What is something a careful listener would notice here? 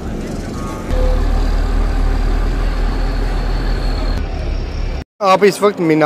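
A diesel coach bus idles.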